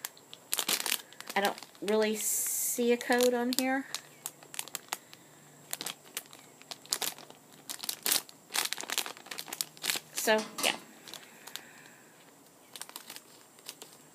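A plastic toy package crinkles and rustles in hands.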